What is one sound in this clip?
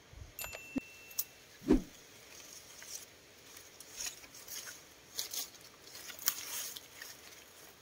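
Leaves rustle as branches are handled.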